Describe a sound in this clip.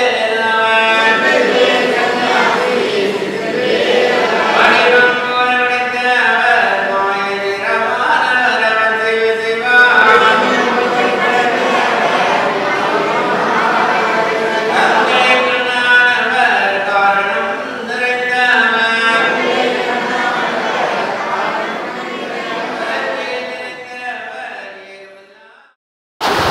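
A group of men chant together loudly over loudspeakers.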